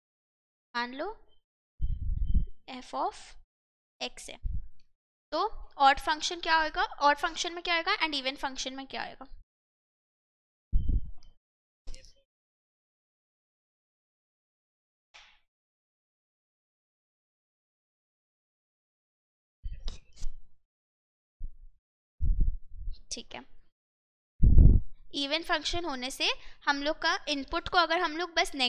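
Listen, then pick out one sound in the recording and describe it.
A young woman speaks calmly and explains, close to a microphone, in pauses.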